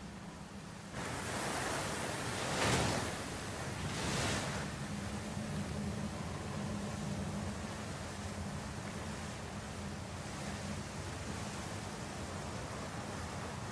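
A waterfall pours and splashes steadily.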